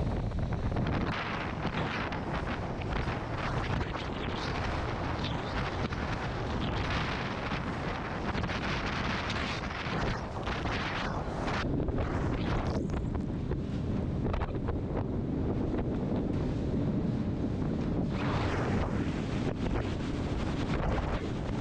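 Waves splash and churn against a speeding boat's hull.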